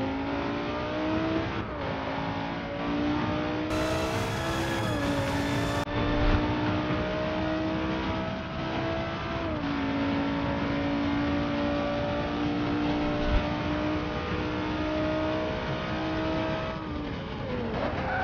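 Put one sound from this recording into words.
A race car engine roars at high revs, rising in pitch and dropping briefly with each gear change.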